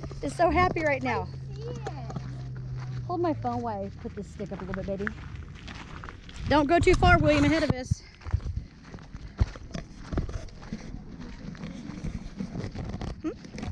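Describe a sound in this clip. Footsteps crunch on dry, gravelly ground.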